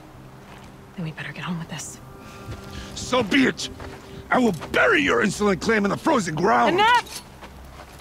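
A man speaks in a deep, serious voice, close by.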